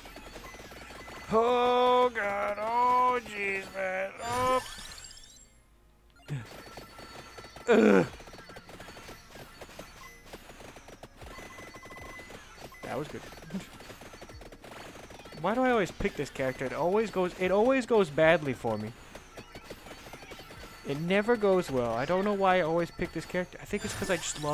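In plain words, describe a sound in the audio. Rapid electronic blips and zaps from a video game play throughout.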